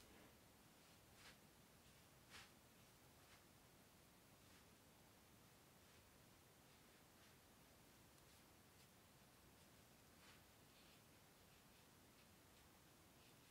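A brush softly strokes paper.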